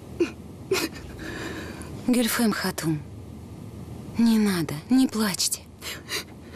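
A woman speaks close by in a tearful, pleading voice.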